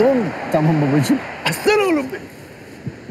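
A man laughs and talks loudly and excitedly close by.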